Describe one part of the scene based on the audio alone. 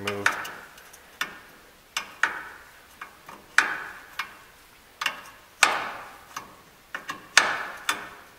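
A metal hammer strikes steel with sharp, ringing clangs at a steady pace.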